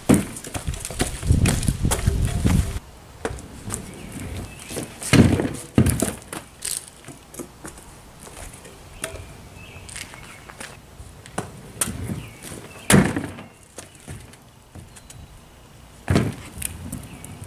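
Scooter wheels roll and rattle on concrete.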